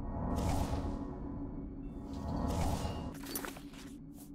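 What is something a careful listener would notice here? A magical spell whooshes and shimmers.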